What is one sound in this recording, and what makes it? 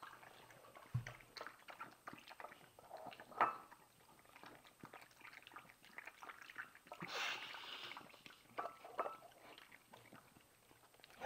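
A dog laps and chews food from a bowl nearby.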